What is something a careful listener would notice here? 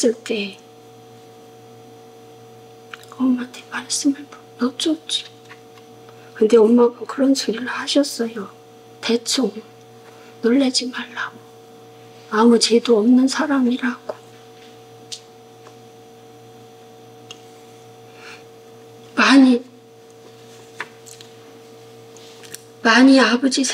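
An elderly woman speaks haltingly and emotionally, close by.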